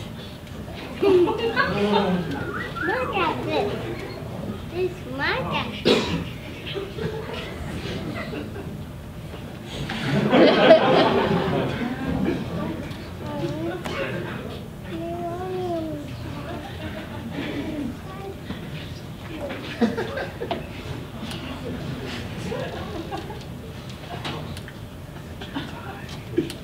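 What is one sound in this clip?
A man speaks with animation over a loudspeaker in a large room.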